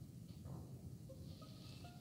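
A game alarm blares.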